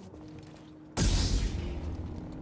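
A laser sword ignites with a sharp whoosh.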